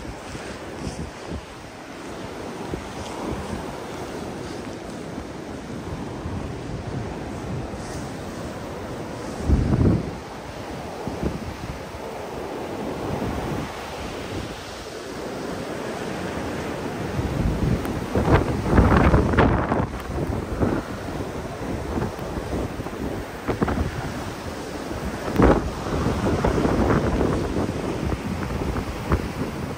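Strong wind roars and gusts outdoors in a blizzard.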